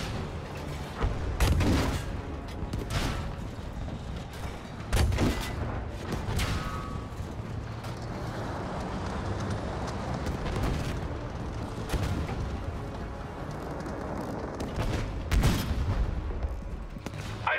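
Heavy explosions boom and crack.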